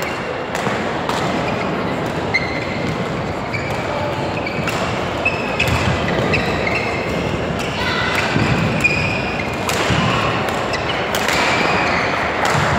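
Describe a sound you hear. A large hall echoes with the busy noise of other games.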